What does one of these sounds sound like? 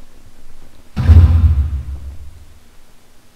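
A heavy wooden door swings open with a low creak.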